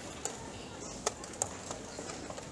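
A chess piece is set down on a wooden board with a light click.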